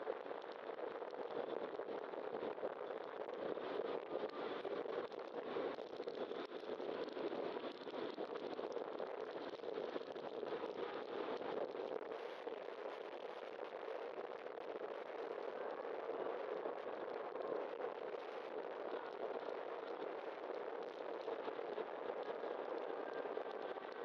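Tyres roll steadily over city pavement.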